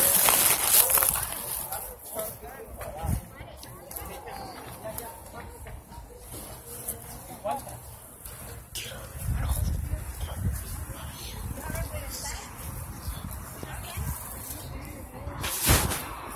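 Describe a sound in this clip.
Men and women chatter faintly in the distance.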